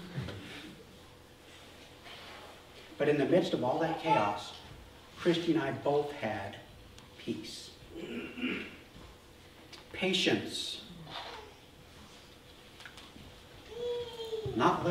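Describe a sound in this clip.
A middle-aged man speaks calmly and with emphasis, with pauses.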